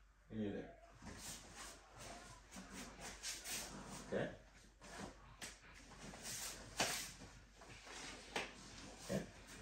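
A sword swishes through the air in quick strokes.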